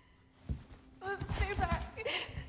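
A young woman shouts sharply.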